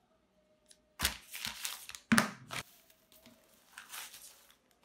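Bubble wrap packaging crackles as a hand presses it.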